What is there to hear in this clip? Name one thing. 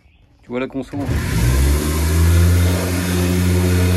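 A portable power station's cooling fan hums and whirs steadily.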